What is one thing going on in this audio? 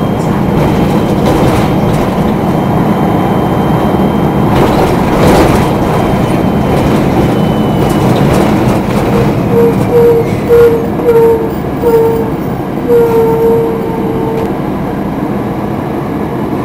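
A car engine hums and tyres roll steadily over the road.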